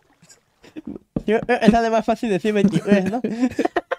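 A young man laughs.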